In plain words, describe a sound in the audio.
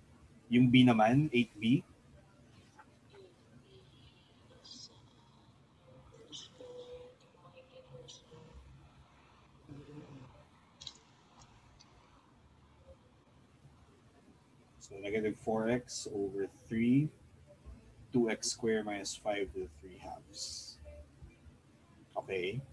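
A man speaks calmly into a microphone, in bursts with long pauses.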